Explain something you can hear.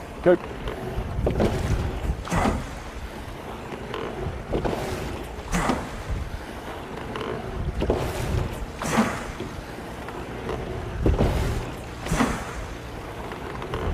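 Water rushes past a boat's hull.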